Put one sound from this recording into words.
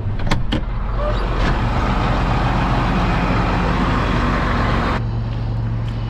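Wind rushes loudly into an open cab.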